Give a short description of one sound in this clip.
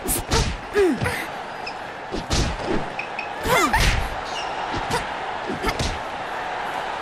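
Boxing gloves thud against a body in quick, sharp punches.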